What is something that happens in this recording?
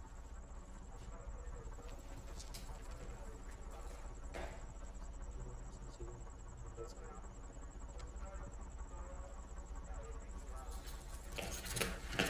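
Men talk quietly in the distance.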